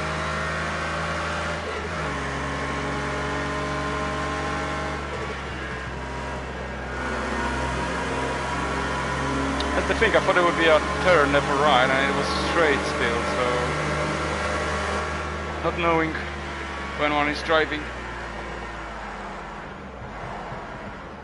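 A racing car engine roars steadily, its pitch rising and dropping as the gears shift.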